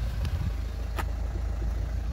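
A seat heater switch clicks under a finger.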